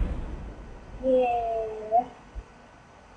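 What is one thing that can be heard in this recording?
A short chime-like jingle plays.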